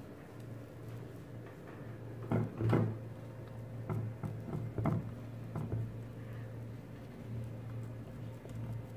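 Hands softly rub and roll a dough ball on a plastic board.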